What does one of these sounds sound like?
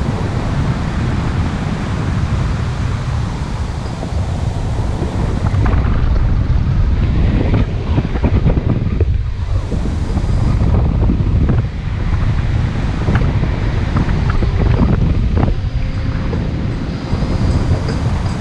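Strong wind roars and buffets loudly.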